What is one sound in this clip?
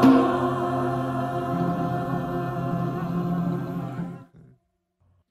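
A choir of men and women sings together over an online call.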